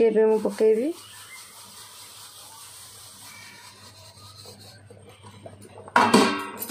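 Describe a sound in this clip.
Dry grain pours into a pot of hot water with a soft hiss.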